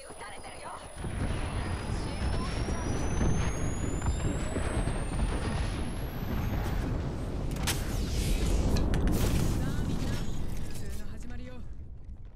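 A healing device whirs steadily as it charges up.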